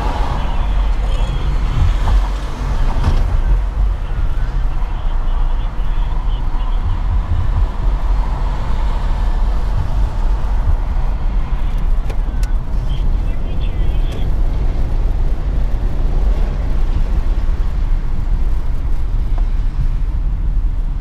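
A car drives steadily along a highway.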